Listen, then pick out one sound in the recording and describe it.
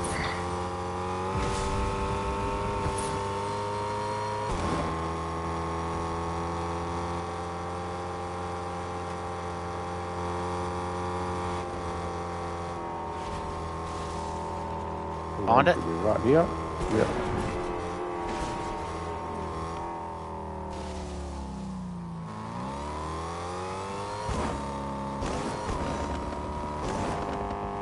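A car engine hums steadily, its pitch rising and falling slightly.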